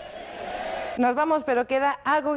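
A young woman speaks with animation to the listener.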